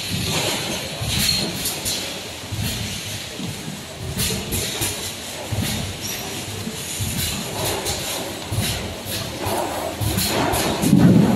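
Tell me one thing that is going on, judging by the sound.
Plastic bottles clatter and knock together.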